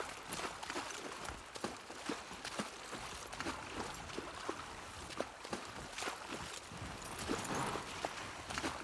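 A shallow stream trickles nearby.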